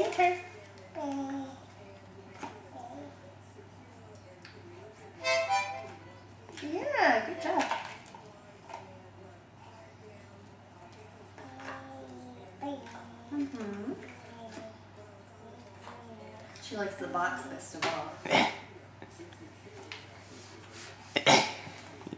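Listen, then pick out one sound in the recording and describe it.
A toddler blows a harmonica in short, wheezy notes.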